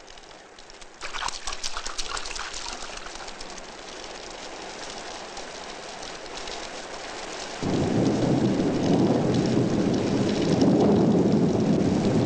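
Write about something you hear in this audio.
Rain pours down outside.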